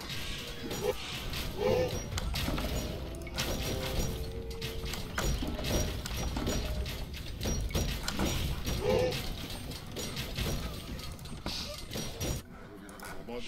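Swords clash and soldiers fight in a noisy battle.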